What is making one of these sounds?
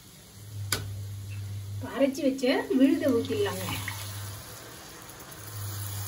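Liquid pours into a hot pan and splashes.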